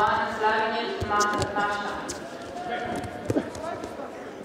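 A body slams onto a mat with a dull thud.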